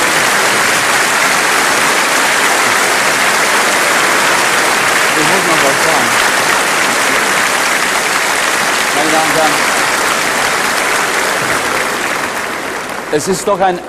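A large crowd applauds loudly in a big hall.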